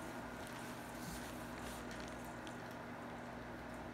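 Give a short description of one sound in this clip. A baby's rocking seat creaks softly as a small child nudges it.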